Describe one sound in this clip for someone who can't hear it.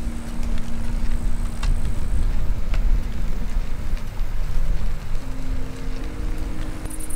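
Wind buffets and rumbles steadily outdoors.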